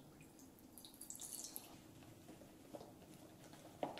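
Powder pours with a soft hiss into a plastic bowl.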